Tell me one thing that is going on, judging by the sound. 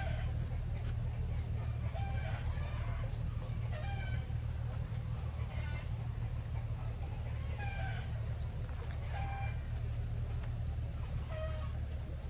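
A river flows gently nearby.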